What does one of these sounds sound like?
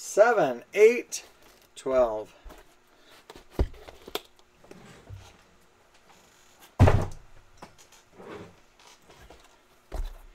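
Cardboard boxes knock and scrape as they are moved by hand.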